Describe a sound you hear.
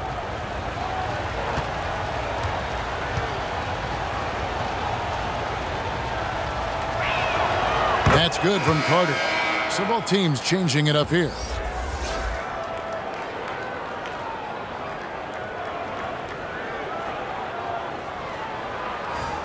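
A large arena crowd murmurs steadily.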